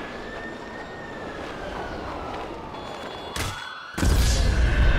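Wind rushes loudly past a falling body.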